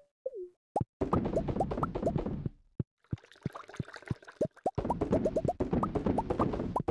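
Menu clicks and pops sound quickly one after another.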